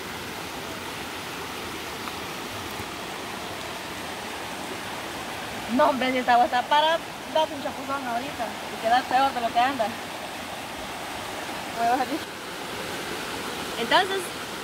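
A stream rushes over rocks nearby.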